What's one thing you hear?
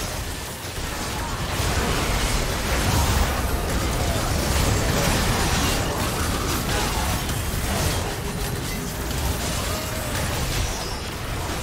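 Magic spell blasts crackle and boom in a chaotic fight.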